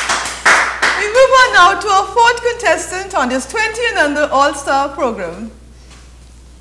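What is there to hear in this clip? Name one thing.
A woman speaks with animation and laughs, close to a microphone.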